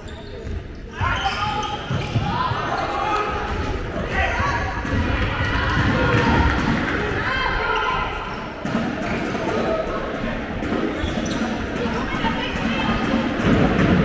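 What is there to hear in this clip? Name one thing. Young players shout and call to each other across the hall.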